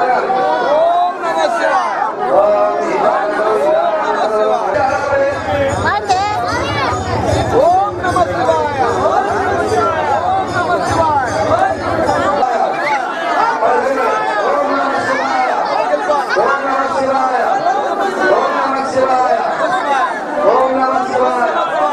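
A crowd of people chants and sings loudly together.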